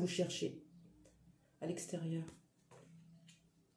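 A playing card is laid softly onto a cloth.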